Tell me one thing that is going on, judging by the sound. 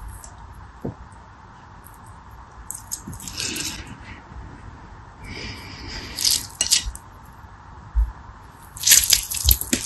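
Water beads click and rattle against a plastic dish.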